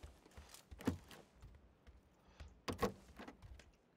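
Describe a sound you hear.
A wooden door swings open with a knock.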